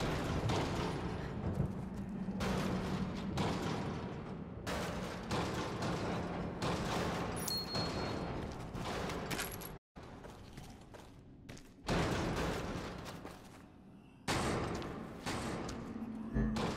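Footsteps scuff slowly on a stone floor.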